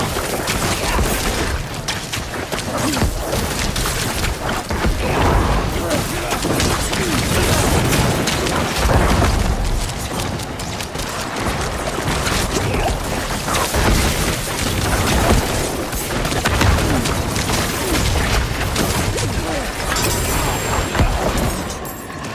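Blows thud and impacts boom repeatedly.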